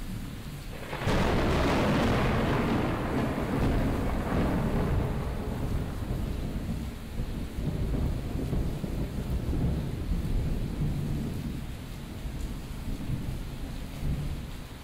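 Loud live music fills a large echoing room.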